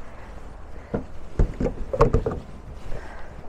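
A charging plug clunks into a car's socket.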